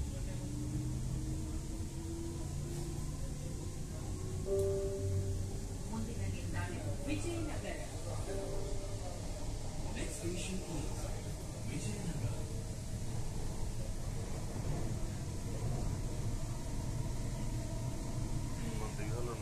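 A train rumbles and hums steadily as it travels along the track.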